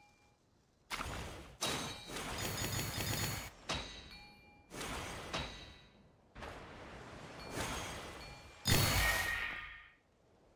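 Bright chimes ring out as glowing particles are collected.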